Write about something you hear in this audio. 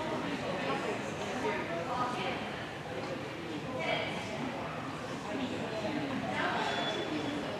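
A man calls out commands to a dog, heard in a large echoing hall.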